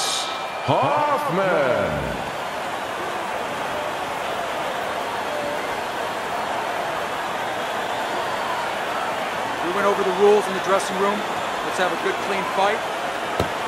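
A large crowd cheers and roars steadily in a big hall.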